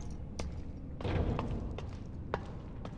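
Hands and feet clank on a metal ladder.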